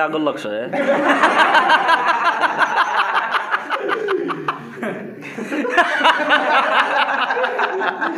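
A group of young men laugh together.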